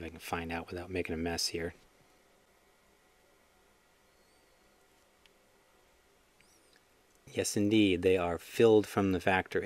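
Small metal parts click softly between fingers.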